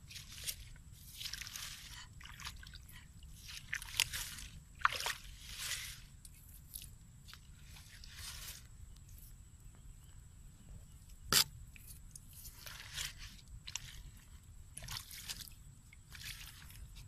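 A hoe scrapes and squelches through wet mud.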